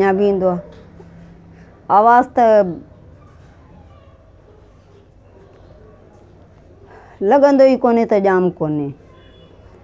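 A woman speaks calmly and close to a microphone, in short bursts with pauses.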